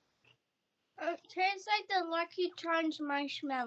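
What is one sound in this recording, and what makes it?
A girl talks close to a microphone.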